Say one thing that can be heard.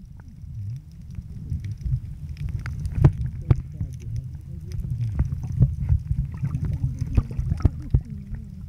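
Water rumbles and crackles, heard muffled from underwater.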